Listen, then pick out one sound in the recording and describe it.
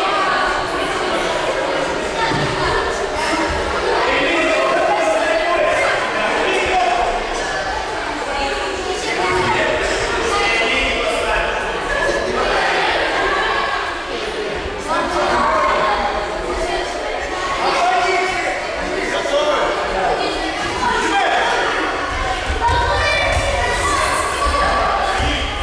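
Many children chatter and call out in a large echoing hall.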